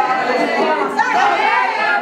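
A young girl shouts excitedly.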